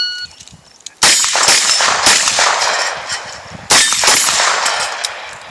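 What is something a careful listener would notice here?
A rifle fires rapid shots outdoors, each crack echoing.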